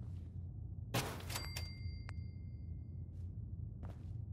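A bright chime rings once as an item is placed.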